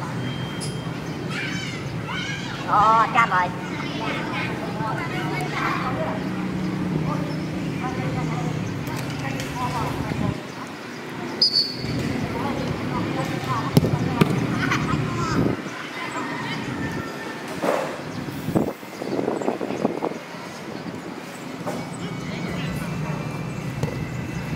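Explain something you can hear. Young men shout and call to each other outdoors.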